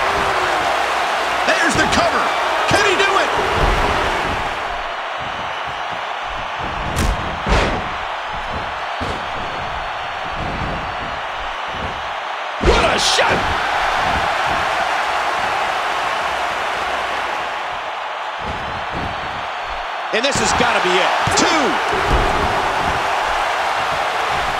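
A large crowd cheers steadily in a big arena.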